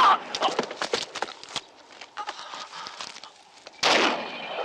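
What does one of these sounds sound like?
A man groans in pain close by.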